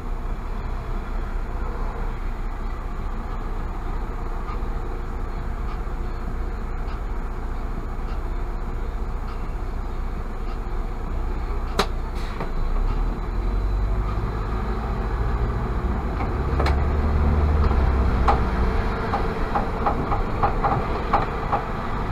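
A car engine hums steadily at idle, then rises as the car moves off.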